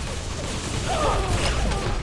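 A game gun fires in sharp bursts.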